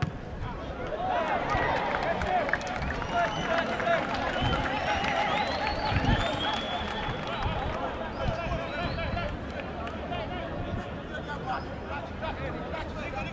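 Spectators in a stadium shout and cheer.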